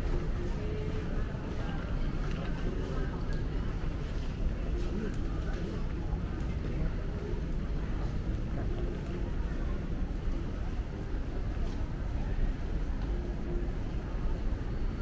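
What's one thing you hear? Footsteps shuffle across a hard floor in a large echoing hall.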